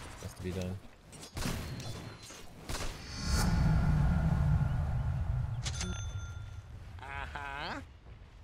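Weapons clash in a fight between game characters.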